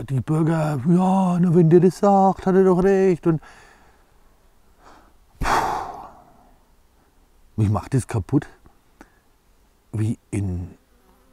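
A middle-aged man speaks calmly and close by, with pauses.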